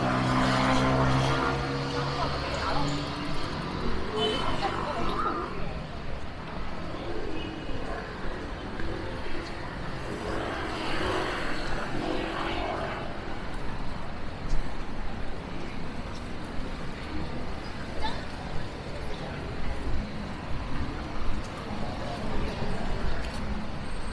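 Traffic rumbles steadily in the open air.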